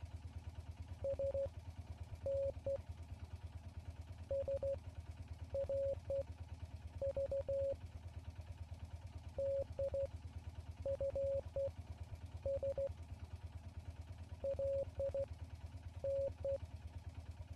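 Short, steady Morse code beeps sound in quick bursts.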